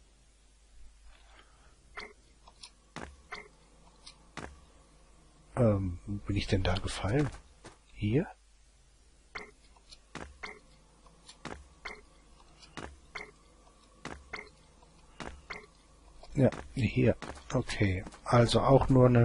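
Footsteps tap on hard ground at a steady pace.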